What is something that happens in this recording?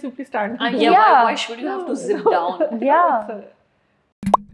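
A young woman speaks with emotion close to a microphone.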